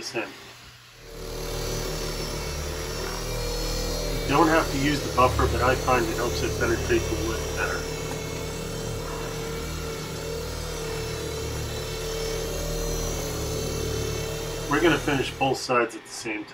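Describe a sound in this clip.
An electric orbital buffer with a soft pad hums across a wooden tabletop.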